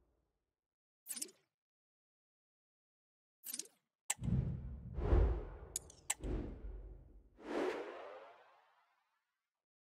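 Short electronic whooshes and clicks sound as game menus change.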